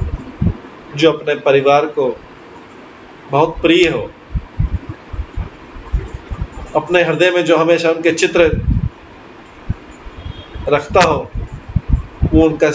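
A middle-aged man speaks calmly in short bursts, heard through an online call.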